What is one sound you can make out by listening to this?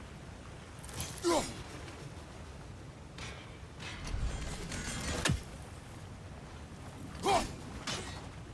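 An axe whooshes through the air.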